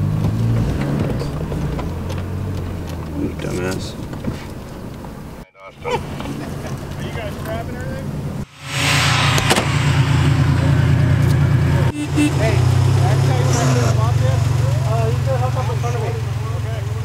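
A truck engine rumbles and revs close by.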